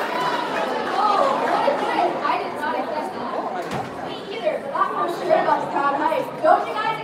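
A woman speaks through a microphone over a loudspeaker.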